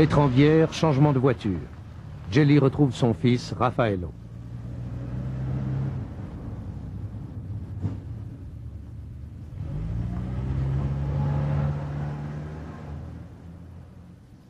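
A car engine runs and the car drives away, fading.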